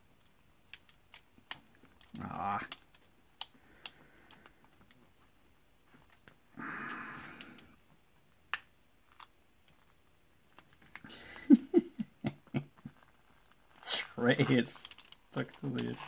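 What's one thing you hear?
A plastic sheet crinkles and rustles under fingers, close by.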